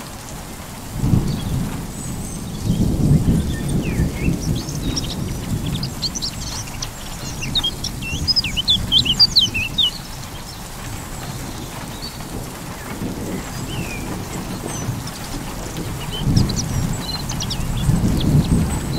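Thunder rumbles deeply in the distance, rolling in waves.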